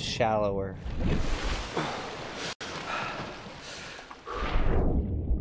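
Water splashes and rushes as a swimmer breaks the surface.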